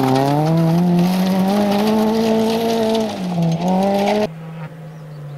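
Gravel sprays and rattles under a car's tyres.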